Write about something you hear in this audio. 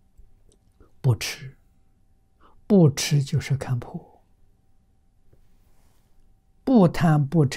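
An elderly man speaks slowly and calmly into a close microphone, with long pauses.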